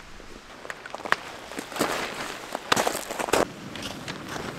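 Tent fabric rustles and flaps.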